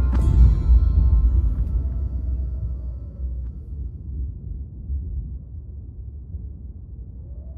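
Thunder cracks and rumbles deeply, slowly fading.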